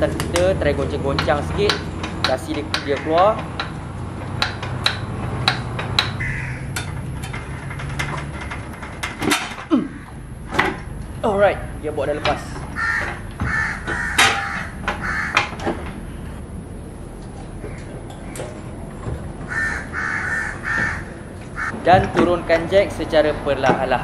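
Metal parts clank and knock close by.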